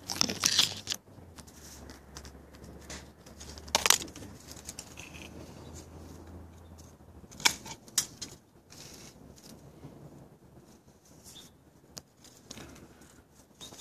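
Leaves rustle and brush against each other.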